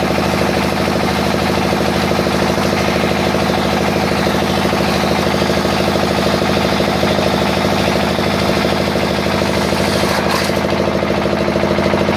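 A machine's rollers rattle as a wooden stick feeds through.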